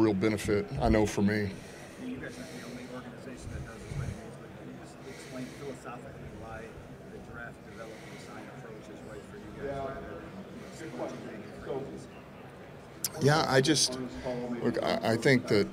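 A middle-aged man speaks into a microphone, loud and close, with pauses.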